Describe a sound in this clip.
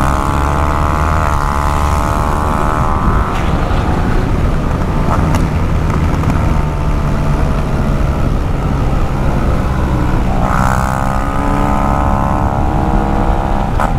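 A motorcycle engine roars steadily at high speed.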